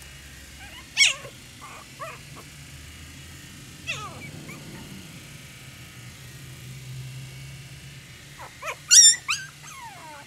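A puppy yelps sharply.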